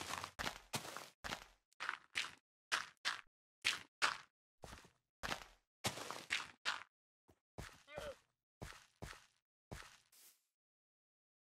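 Stone blocks crunch as they are placed and broken, over and over in quick bursts.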